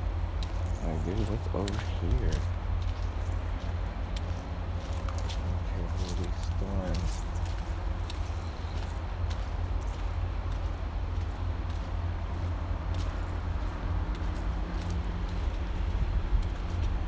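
Footsteps crunch on a dry dirt path.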